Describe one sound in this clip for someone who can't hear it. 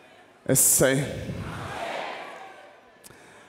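A crowd cheers and calls out.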